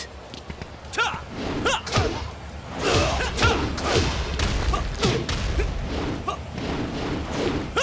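Punches and kicks land with sharp, heavy thuds in quick bursts.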